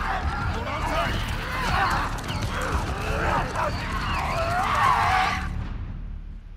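A horse gallops.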